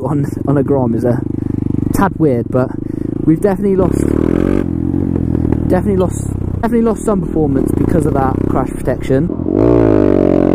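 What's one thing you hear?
A motorcycle engine idles and putters at low speed.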